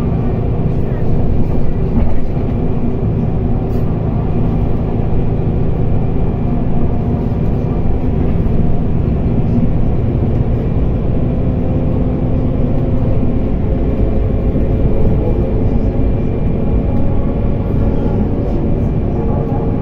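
Cars pass by on the road outside.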